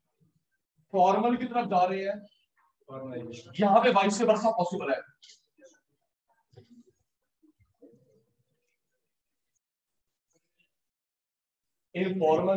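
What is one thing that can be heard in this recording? A man speaks calmly and clearly, close by, like a teacher explaining.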